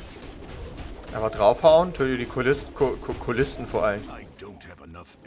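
Fiery blasts whoosh and burst.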